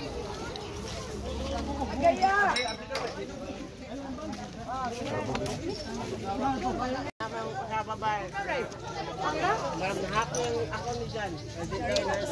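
A crowd of men, women and children chatter and shout nearby, outdoors.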